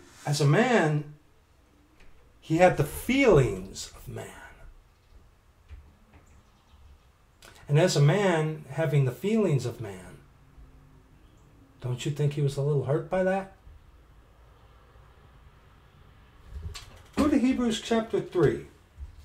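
A middle-aged man speaks calmly and close to a microphone, in short bursts with pauses.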